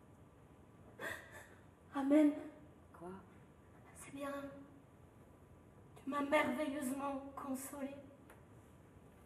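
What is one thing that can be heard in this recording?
A young woman sobs and cries out in distress.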